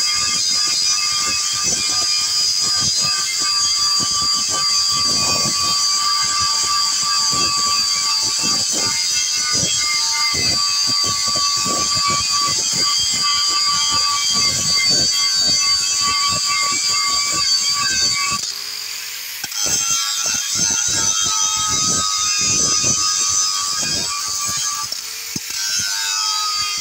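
An angle grinder whines loudly as it grinds against steel.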